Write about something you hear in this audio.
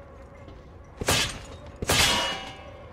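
A loud blast bursts and crackles, then fades.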